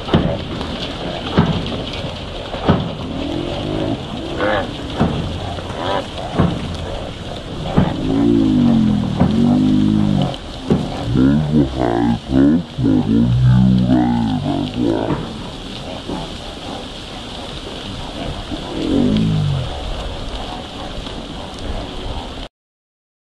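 A large flock of ducks quacks loudly and continuously, close by.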